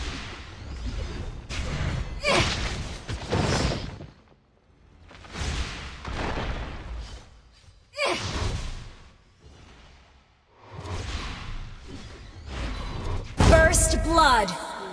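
Magic blasts and sword strikes whoosh and crash in short bursts.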